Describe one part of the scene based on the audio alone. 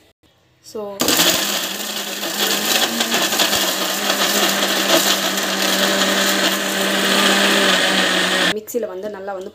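A blender motor whirs loudly, grinding.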